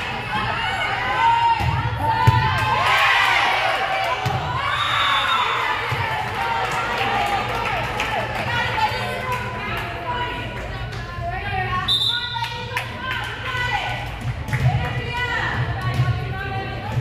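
Young women players shout and call out to each other.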